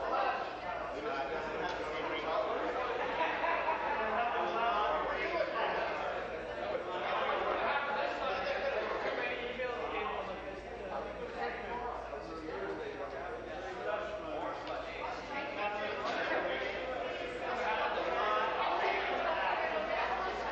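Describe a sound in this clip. A man speaks steadily into a microphone in a large echoing hall.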